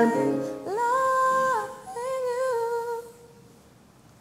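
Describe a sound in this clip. A young woman sings a held melody nearby.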